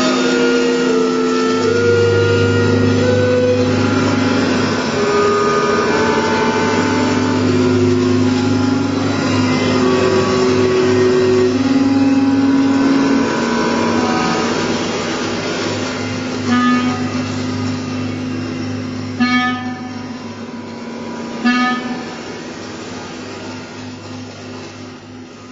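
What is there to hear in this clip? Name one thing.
A clarinet plays a slow, sustained melody in a reverberant room.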